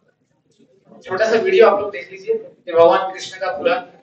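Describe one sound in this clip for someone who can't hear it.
A man speaks loudly through a loudspeaker in a large echoing hall.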